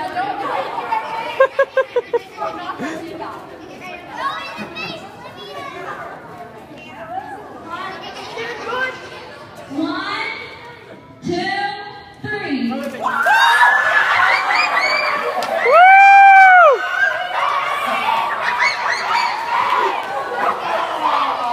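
A crowd of children and adults chatters and calls out nearby in an echoing hall.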